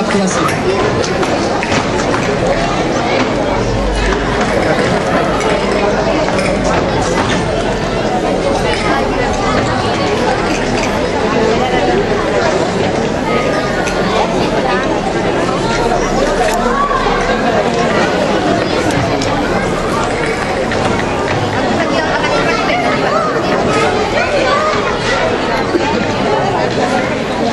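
A folk ensemble of acoustic guitars plays a lively strummed tune outdoors.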